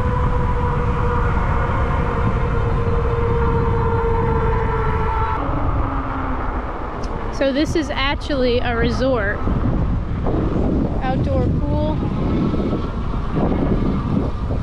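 Bicycle tyres roll steadily on pavement.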